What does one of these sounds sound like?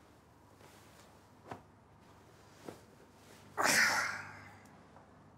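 A blanket rustles as it is thrown back.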